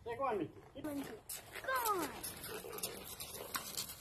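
A horse's hooves thud on gravel.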